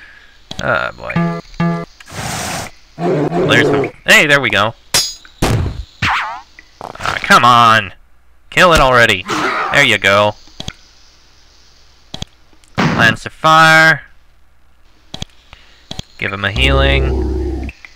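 Magic spell effects whoosh and shimmer in quick bursts.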